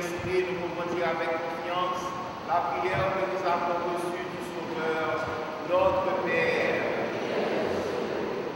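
A man chants in a steady singing voice through a microphone in an echoing hall.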